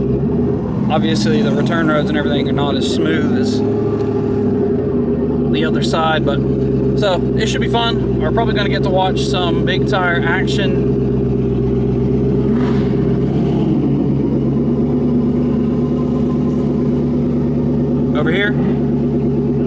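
A car engine drones steadily inside the cabin.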